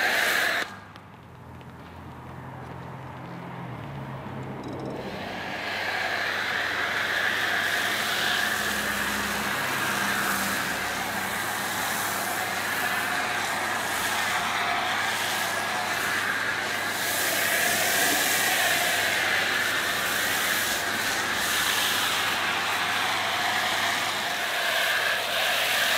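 A pressure washer hisses as it sprays water.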